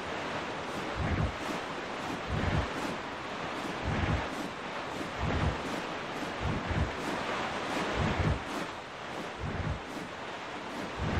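A boat's hull thuds repeatedly against waves.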